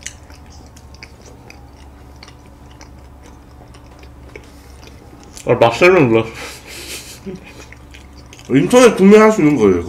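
A young man chews and smacks food close to a microphone.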